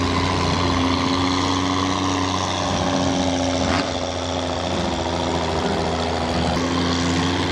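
A monster truck engine rumbles loudly.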